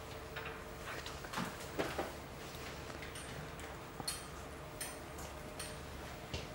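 Medical instruments click and rustle softly close by.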